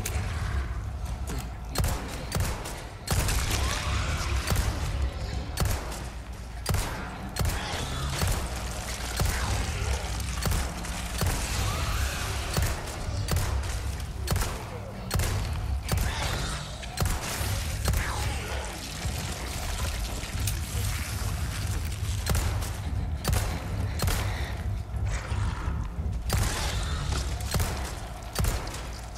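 Pistol shots crack, one after another.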